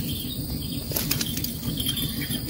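A fishing rod swishes through the air as a line is cast.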